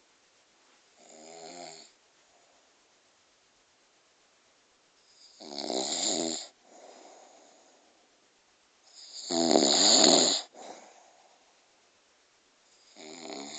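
An elderly man snores loudly close by, in slow, drawn-out bursts.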